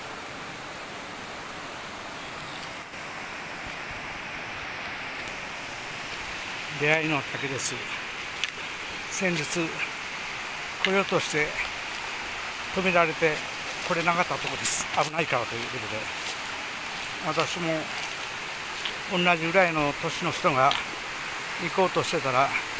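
A stream trickles and splashes over rocks.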